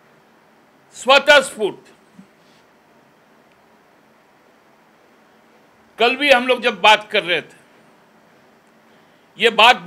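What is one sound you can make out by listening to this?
A middle-aged man speaks forcefully into microphones in short bursts, with pauses between.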